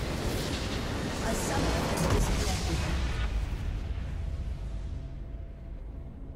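A huge explosion booms and rumbles away.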